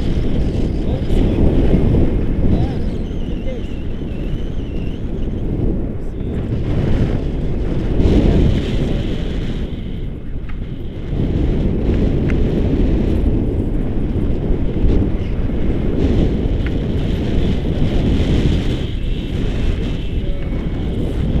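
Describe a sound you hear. Wind roars steadily against a microphone outdoors.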